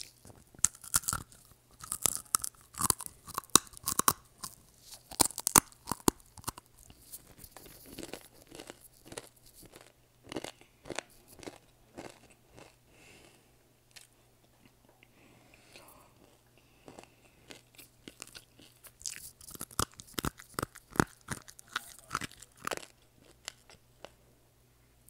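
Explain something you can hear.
Earphone cables rustle and tap against a microphone close up.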